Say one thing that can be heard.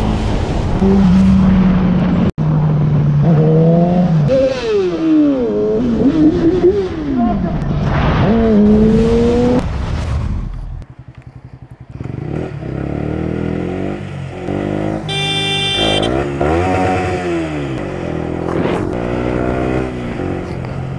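A motorcycle engine revs up and down loudly as it speeds along.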